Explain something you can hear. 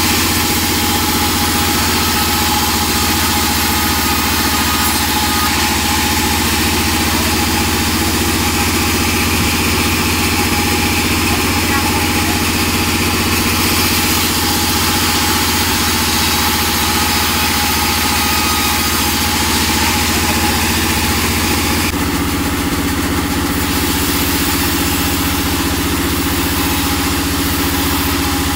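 A band saw whines loudly as it cuts through wood.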